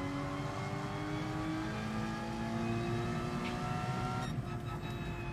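A racing car engine whines at high revs.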